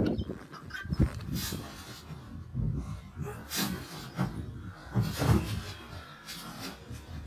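A trampoline mat thumps and creaks under someone bouncing.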